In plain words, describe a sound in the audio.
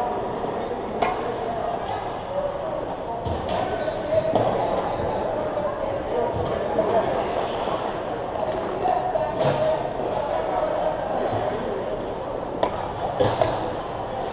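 Hockey sticks and pucks knock sharply in a large echoing rink.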